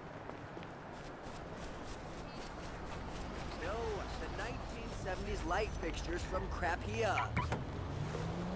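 Footsteps run quickly across grass and pavement.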